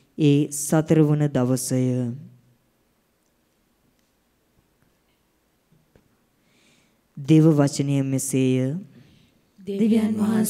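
A young man reads out slowly into a microphone, with pauses between phrases, in a room with a slight echo.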